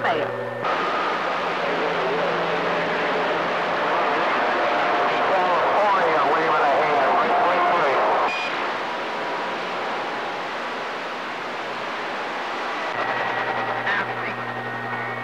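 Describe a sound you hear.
Radio static hisses and crackles steadily from a receiver.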